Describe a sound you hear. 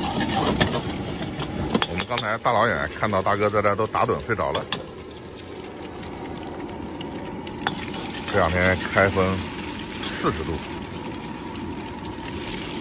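Eggs sizzle and crackle in hot oil.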